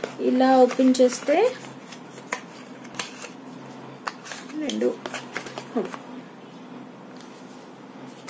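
Cardboard packaging rustles and clicks as it is opened.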